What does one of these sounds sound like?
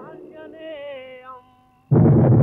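An elderly man sings a long, wavering note.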